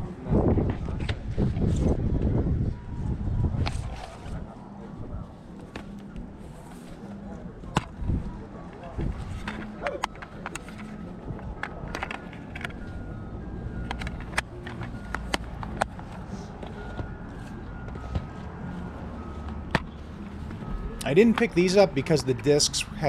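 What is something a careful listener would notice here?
Plastic game cases clack and rattle as hands sort through them.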